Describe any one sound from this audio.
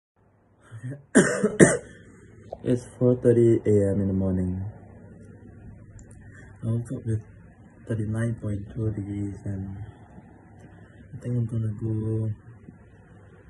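A young man speaks quietly and wearily, close to a phone microphone.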